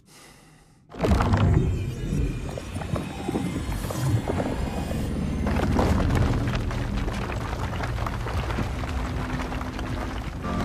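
A heavy stone door rumbles open.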